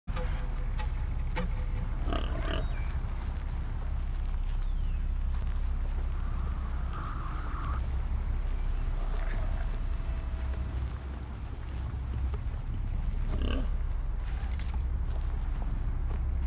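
Footsteps rustle through leafy undergrowth.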